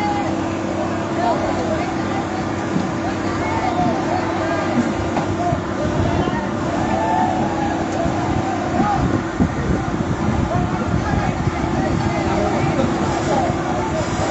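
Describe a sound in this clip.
A crowd of men and women shout and talk excitedly at a distance, outdoors.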